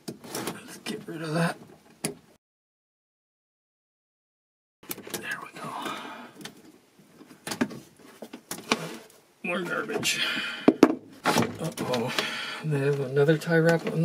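Cables rustle and scrape as a hand pulls them.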